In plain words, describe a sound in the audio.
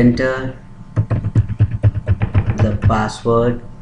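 Keyboard keys click in quick succession.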